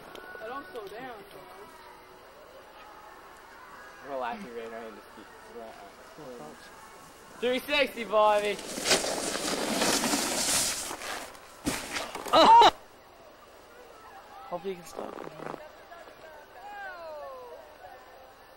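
Young men shout and laugh nearby outdoors.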